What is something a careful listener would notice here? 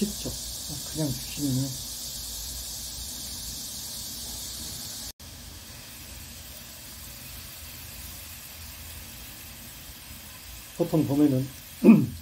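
Water sprays steadily from a watering can onto leaves.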